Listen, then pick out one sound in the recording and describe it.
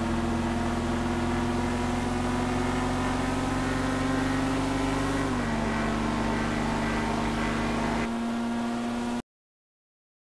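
Car engines drone steadily at high speed.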